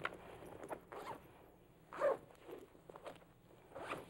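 A zipper rasps open on a bag.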